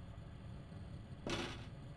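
Footsteps tread on a hard stone floor.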